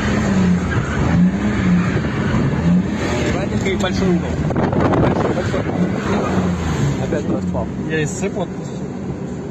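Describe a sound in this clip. A car engine roars and revs up and down, heard from inside the cabin.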